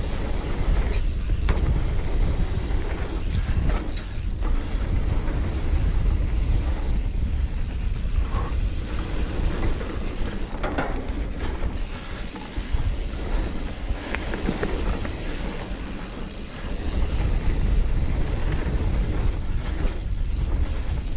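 Bike tyres roll and crunch over a dirt trail.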